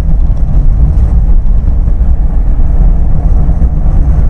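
A truck rumbles past.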